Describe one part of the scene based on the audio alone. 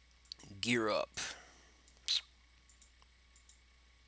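A soft click sounds as an item is picked up.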